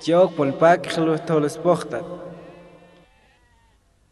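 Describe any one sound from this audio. A man sings loudly with a strong voice that rings out and fades in echo.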